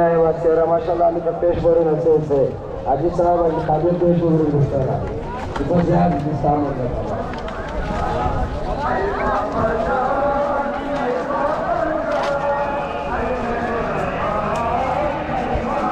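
A man chants loudly through a loudspeaker, echoing outdoors.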